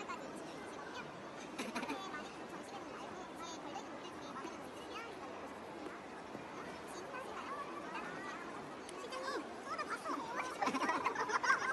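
A crowd murmurs in a busy indoor hall.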